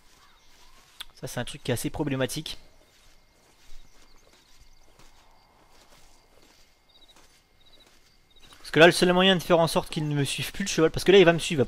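Footsteps crunch softly on dry dirt and gravel.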